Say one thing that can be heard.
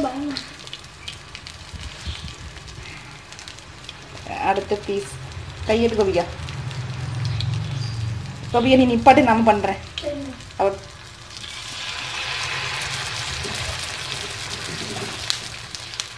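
Oil sizzles softly in a frying pan, growing louder partway through.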